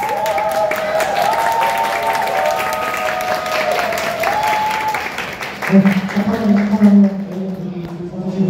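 A crowd cheers and whoops loudly nearby.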